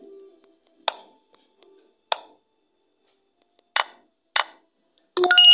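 Game move sounds click sharply as chess pieces are placed.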